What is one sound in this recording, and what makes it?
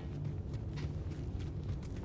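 Footsteps crunch on stony ground.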